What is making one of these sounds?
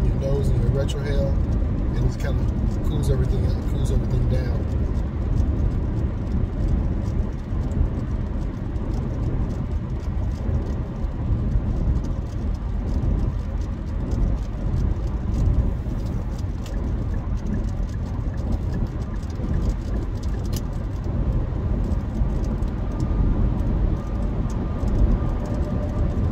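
A car's engine and tyres rumble steadily on the road.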